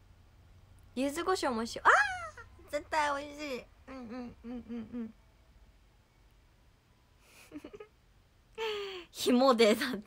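A young woman talks brightly and cheerfully close to a microphone.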